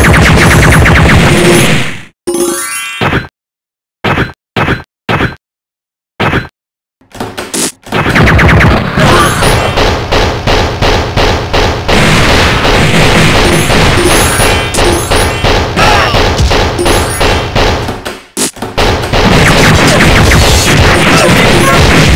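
Objects smash and crash apart.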